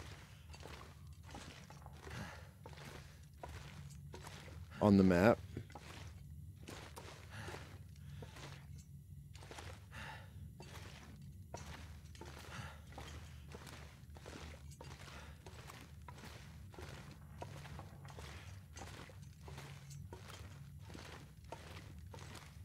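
Footsteps crunch steadily on loose stone.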